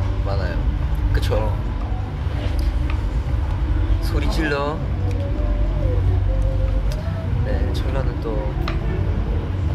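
A young man speaks casually and quietly, close by.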